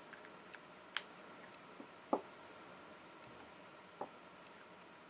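A plastic pen cap clicks a few times.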